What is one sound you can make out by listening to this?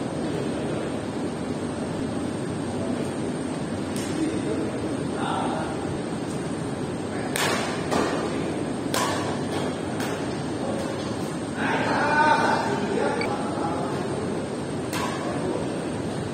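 Shoes squeak and thud on a hard court floor.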